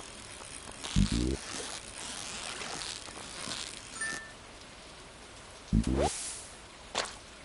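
Electronic game sound effects chime as a fish is reeled in and caught.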